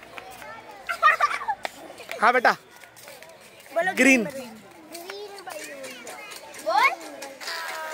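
Children shout and laugh excitedly outdoors.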